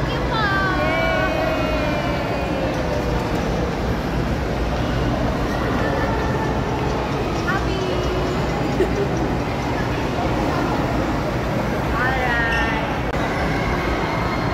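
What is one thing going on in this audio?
A group of young women and men call out greetings and laugh close by.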